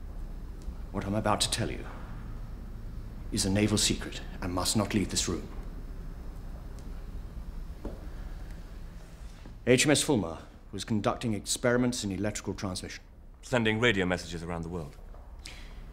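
A middle-aged man speaks firmly and clearly nearby.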